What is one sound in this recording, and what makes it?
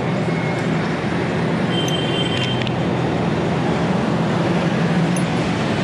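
Metal tools clink together in a hand.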